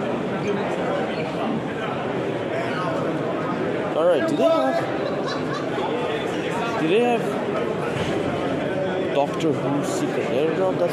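Many people chatter and talk over one another in a large, busy room.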